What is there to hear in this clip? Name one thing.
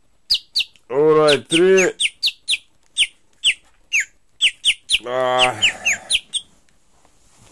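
A phone alarm beeps in quick bursts.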